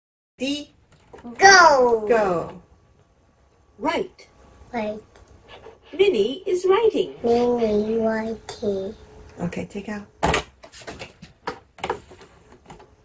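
A toy talks in a recorded voice through a small loudspeaker.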